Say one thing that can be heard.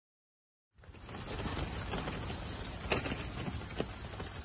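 Wooden crates knock and scrape as two men lift them.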